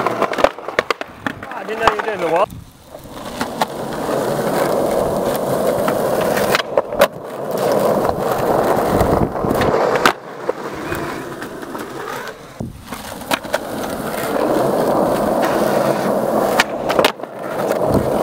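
A skateboard snaps and clacks sharply against concrete.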